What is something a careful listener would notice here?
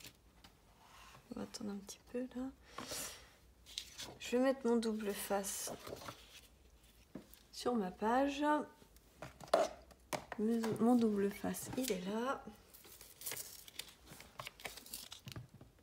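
Paper sheets rustle and slide as they are handled.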